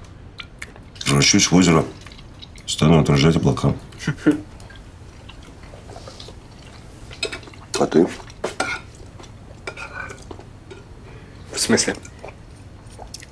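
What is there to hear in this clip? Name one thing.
A middle-aged man speaks quietly, close by.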